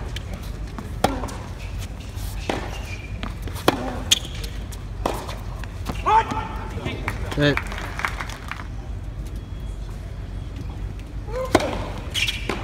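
A tennis ball is struck sharply by rackets, back and forth.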